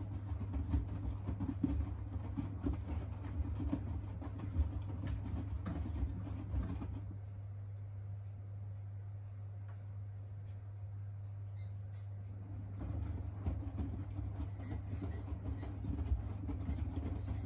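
Wet laundry sloshes and thumps inside a turning washing machine drum.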